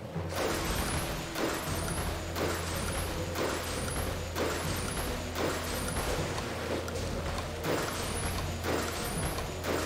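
Water splashes in quick, regular strokes as a character swims.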